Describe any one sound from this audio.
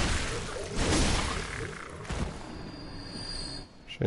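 A blade swishes and slashes.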